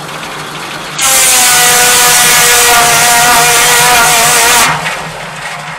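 A circular saw blade whines loudly as it cuts through wood.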